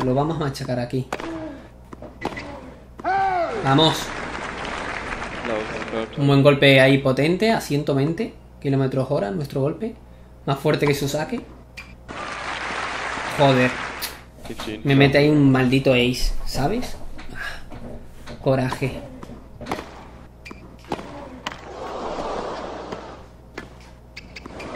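A tennis ball is struck with sharp pops, back and forth.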